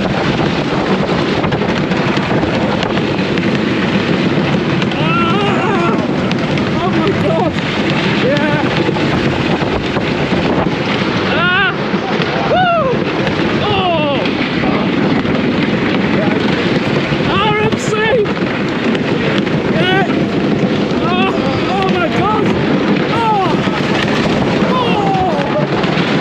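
A roller coaster train rumbles and clatters loudly along a wooden track.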